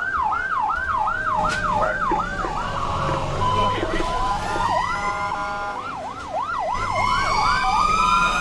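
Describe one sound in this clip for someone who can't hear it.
Fire engines rumble as they drive past.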